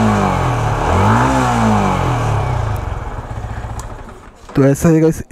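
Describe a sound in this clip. A motorcycle engine idles, revs briefly and winds down.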